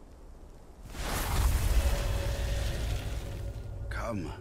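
A fire crackles and hisses nearby.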